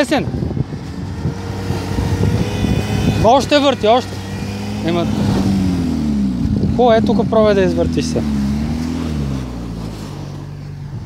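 A car engine idles and revs with a droning hum.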